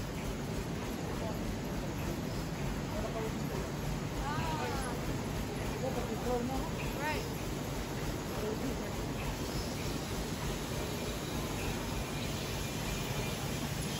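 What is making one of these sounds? Plastic bottles rattle through a machine.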